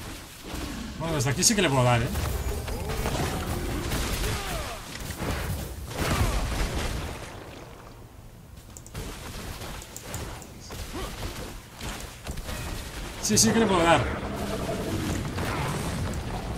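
Spells whoosh and blast with crackling impacts.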